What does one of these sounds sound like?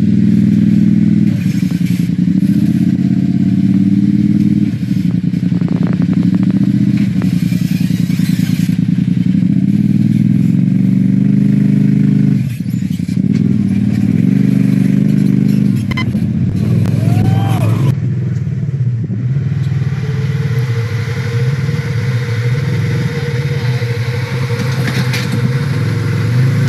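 An off-road vehicle's engine rumbles and revs close by as it crawls over rocks.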